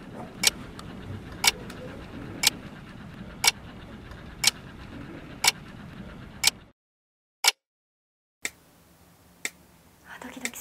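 A clock ticks steadily.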